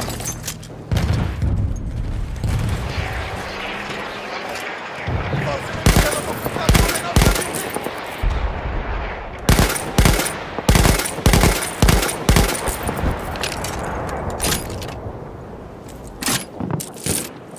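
Explosions rumble in the distance.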